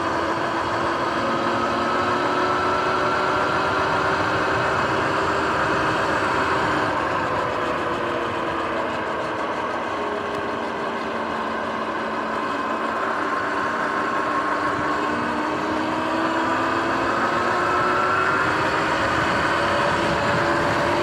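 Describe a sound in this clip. An electric bike motor whines, rising and falling in pitch.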